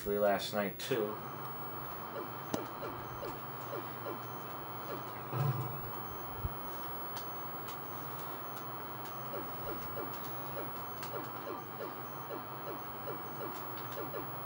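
A video game's spaceship engine drones steadily through a television speaker.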